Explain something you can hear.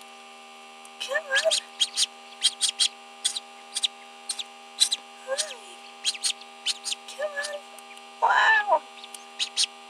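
A chick peeps from inside its shell.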